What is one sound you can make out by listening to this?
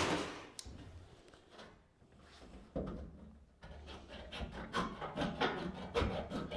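Hands tap and rustle against sheet metal close by.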